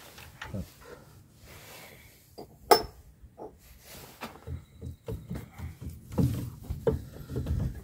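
Metal scrapes as a brake drum is twisted by hand.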